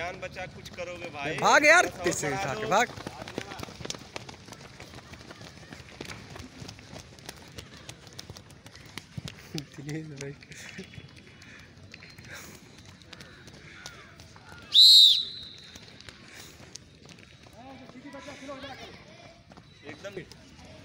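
Runners' feet thud on a grassy dirt track close by.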